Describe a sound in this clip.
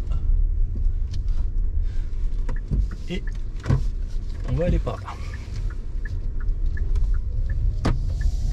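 A car engine and road noise rumble steadily.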